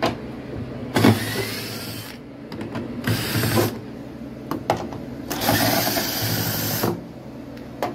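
A cordless drill whirs in short bursts.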